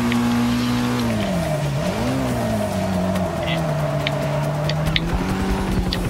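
Car tyres squeal on a wet track while drifting.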